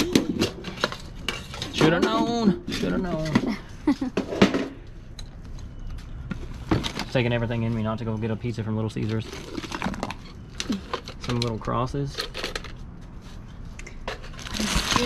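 Items clatter and rustle as hands rummage through a container.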